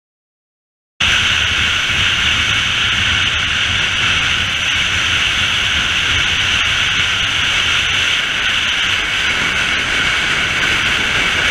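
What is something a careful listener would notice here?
Wind roars steadily past a fast-moving car.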